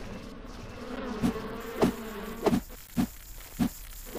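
Giant insects buzz close by.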